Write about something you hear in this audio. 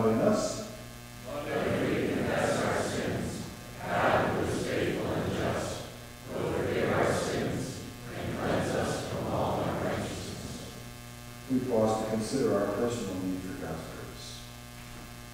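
A man speaks calmly through a microphone in a large echoing hall.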